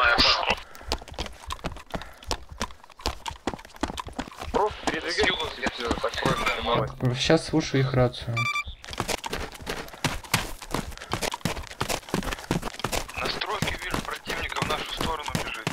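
Footsteps thud steadily on gravel and grass.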